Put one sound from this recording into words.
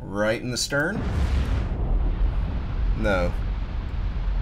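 A torpedo explodes underwater against a ship's hull with a deep boom.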